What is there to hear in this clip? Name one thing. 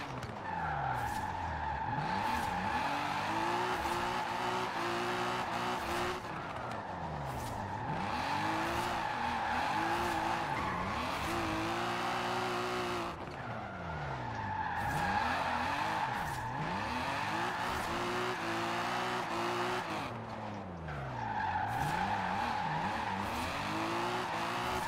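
A car engine revs hard, rising and falling as it shifts gears.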